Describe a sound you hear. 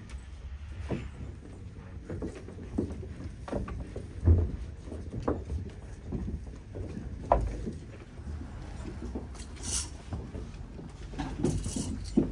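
A crowd murmurs quietly in a room.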